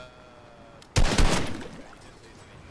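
Water splashes loudly as someone runs into a river.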